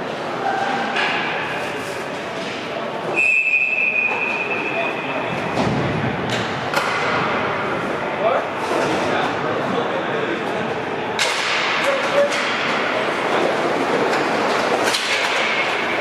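Hockey sticks clack sharply against a ball and the floor.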